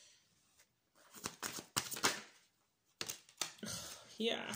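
Cards shuffle and slap together in quick bursts.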